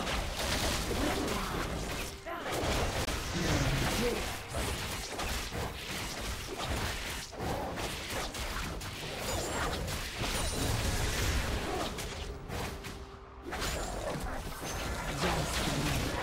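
Clashing blows and magic effects sound from a video game battle.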